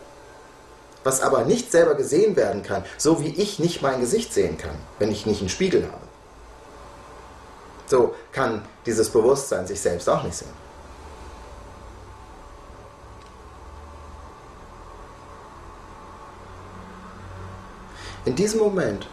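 A middle-aged man speaks calmly and close up, with long pauses.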